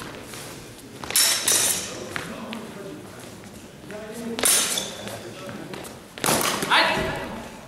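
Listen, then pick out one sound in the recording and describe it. Practice swords clack against each other.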